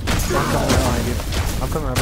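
An explosion booms with crackling sparks.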